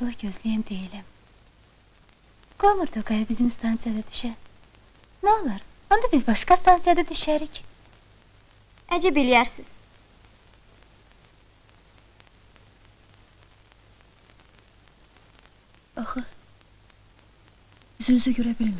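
A woman speaks quietly and tensely, close by.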